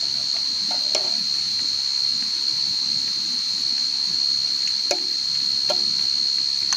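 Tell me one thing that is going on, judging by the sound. A metal cup clinks against the ground.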